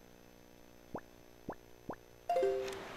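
Soft electronic clicks sound.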